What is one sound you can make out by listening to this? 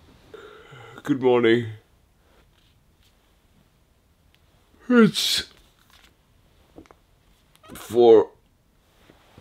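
A young man groans and yawns loudly.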